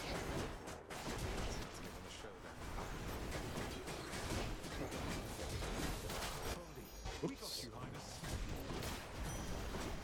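Game combat sounds crash and clang.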